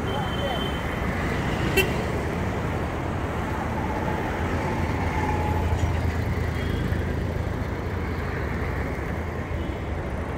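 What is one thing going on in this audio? Motorcycle engines buzz as they pass close by.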